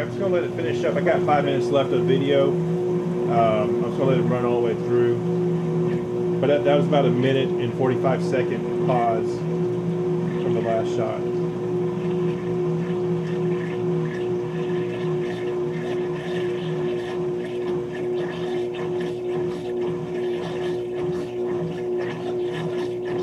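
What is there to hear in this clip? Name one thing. A washing machine hums and churns steadily as the drum spins.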